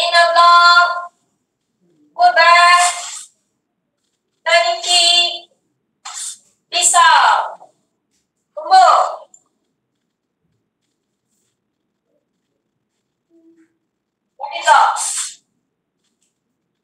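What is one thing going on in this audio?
A woman calls out short counts over an online call.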